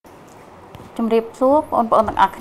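A woman speaks calmly and clearly into a nearby microphone.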